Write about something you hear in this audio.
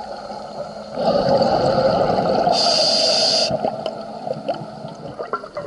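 Air bubbles burst out and gurgle loudly close by underwater.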